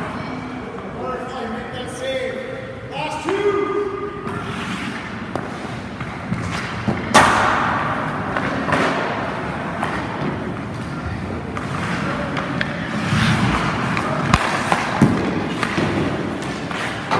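Ice hockey skates scrape and carve across ice in an echoing rink.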